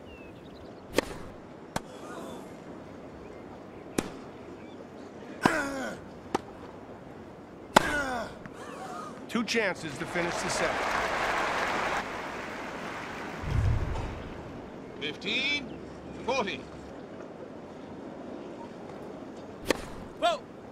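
A tennis racket strikes a ball with sharp pops.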